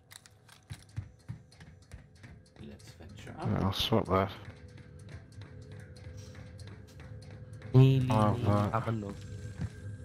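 Footsteps clank on a metal ladder during a climb.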